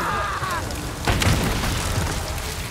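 An explosion booms and crackles with fire.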